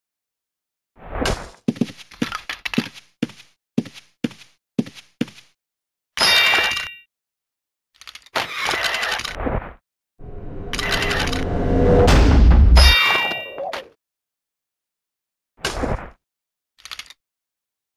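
Weapon blows strike and clatter in quick bursts.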